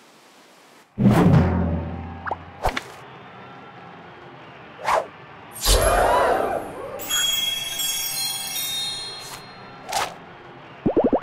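Game music swells in a triumphant fanfare.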